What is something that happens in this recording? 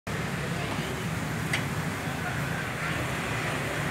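A car bonnet creaks as it is lifted open.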